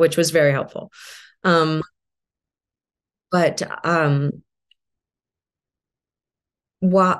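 A middle-aged woman speaks calmly into a microphone, in short phrases with pauses.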